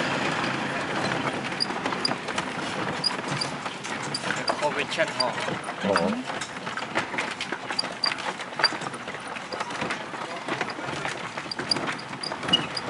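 A pedal rickshaw rattles and clicks as it rolls along pavement.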